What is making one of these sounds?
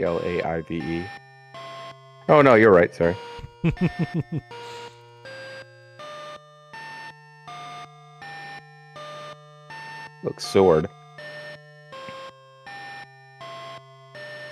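Simple beeping computer game music plays in short, even notes.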